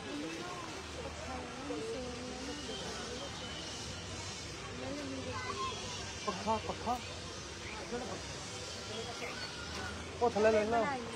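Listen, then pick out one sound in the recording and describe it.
Men and women talk and chatter nearby outdoors.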